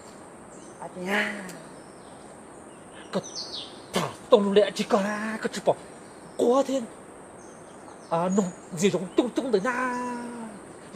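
A man calls out in short, wavering bursts.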